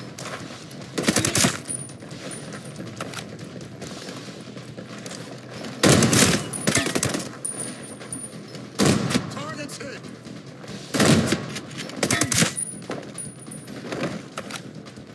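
Gunshots fire in short bursts, echoing down a tunnel.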